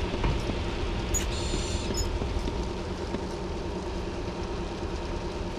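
Footsteps thud on a hollow metal walkway.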